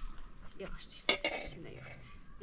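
A metal spoon scrapes and clinks against a cooking pot.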